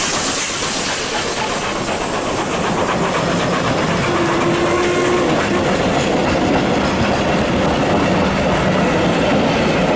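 Passenger carriages clatter past on the rails.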